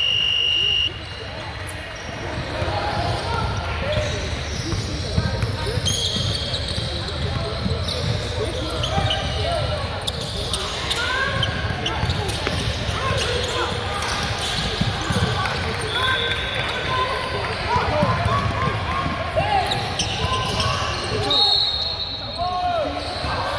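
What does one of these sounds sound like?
A crowd of spectators murmurs and calls out in the echoing hall.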